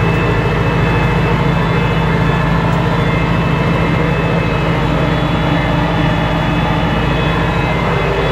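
A rotary tiller rattles through the soil.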